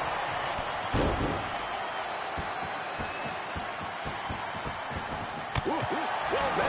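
A heavy thud of a body hitting the ring mat.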